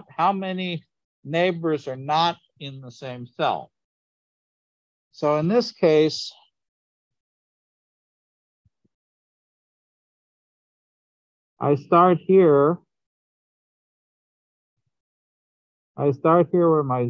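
A man speaks calmly through a microphone over an online call, explaining in short bursts with long pauses.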